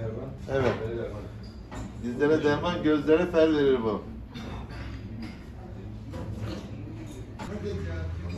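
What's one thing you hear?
A ladle clinks against a pot of soup.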